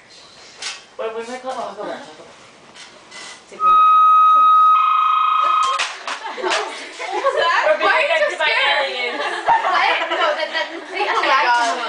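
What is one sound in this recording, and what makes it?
Young women talk and laugh together nearby.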